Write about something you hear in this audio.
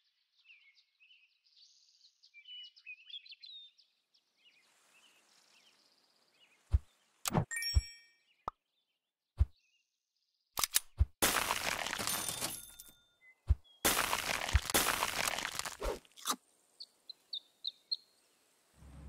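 Short game sound effects click, chime and pop.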